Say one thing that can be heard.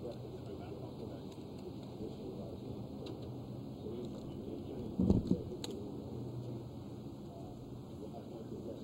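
Distant traffic rumbles steadily along a highway outdoors.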